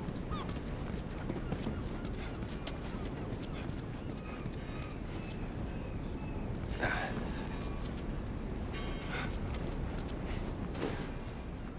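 Footsteps scuff and thud on a hard floor.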